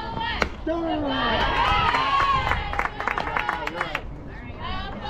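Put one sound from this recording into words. A crowd cheers and yells loudly.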